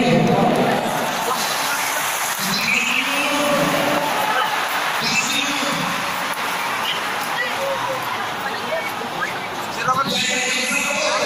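A huge crowd roars and chants in a vast open stadium.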